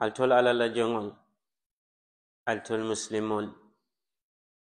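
An elderly man chants loudly through a microphone in a large echoing hall, pausing between phrases.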